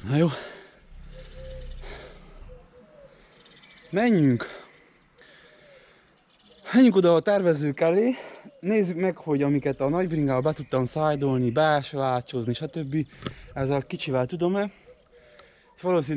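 A man speaks with animation close to the microphone.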